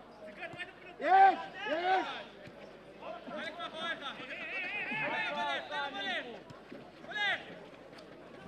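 Young men shout loudly to each other across an open pitch.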